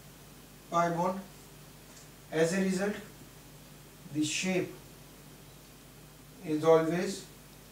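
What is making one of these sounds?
A man speaks slowly and calmly in short phrases, close by.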